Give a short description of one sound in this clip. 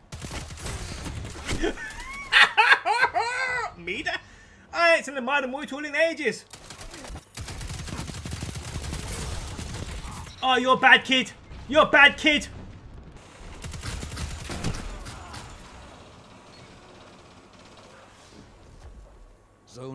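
Gunfire crackles rapidly from a game.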